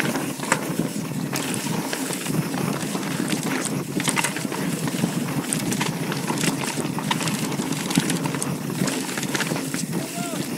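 Wind rushes steadily past close by.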